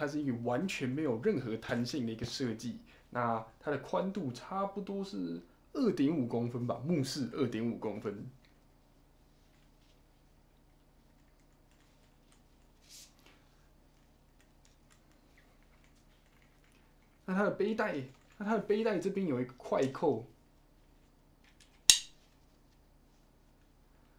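A bag strap rustles and clicks in a young man's hands.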